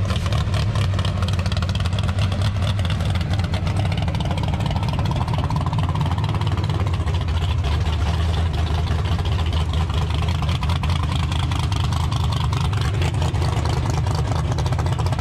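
A loud engine rumbles and idles close by.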